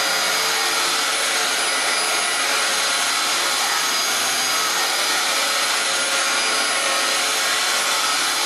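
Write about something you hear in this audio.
A vacuum cleaner whines loudly and steadily as it runs over carpet.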